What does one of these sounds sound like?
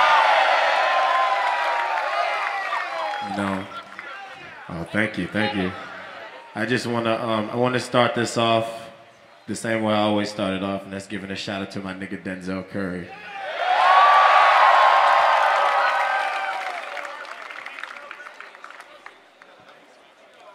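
A large outdoor crowd cheers and screams loudly.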